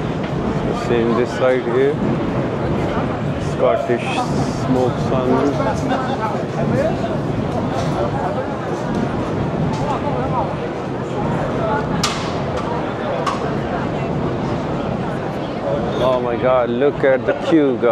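Men and women talk nearby with animation.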